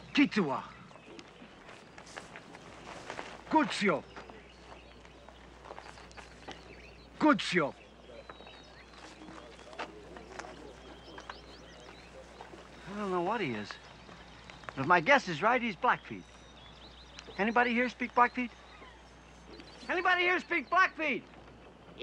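An older man shouts loudly outdoors.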